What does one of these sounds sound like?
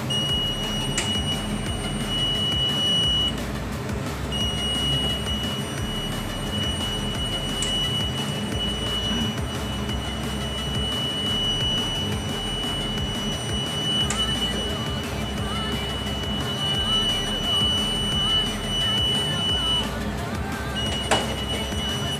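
A metal panel cover clicks as it opens and shuts.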